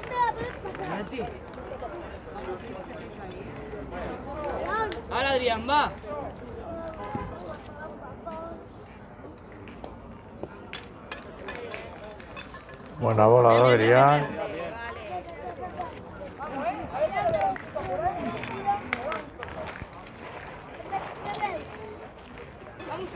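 Young men talk nearby outdoors.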